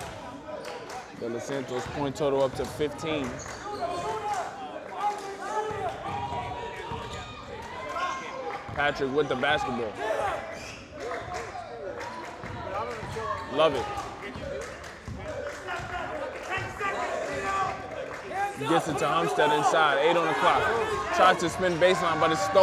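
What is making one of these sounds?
A basketball bounces on a hard wooden floor.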